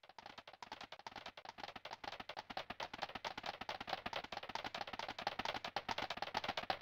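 A video game plays rapid, steady electronic blips.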